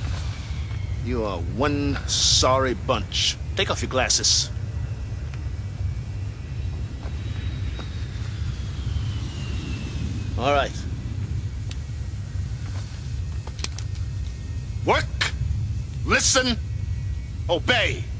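A man speaks loudly and forcefully, close by.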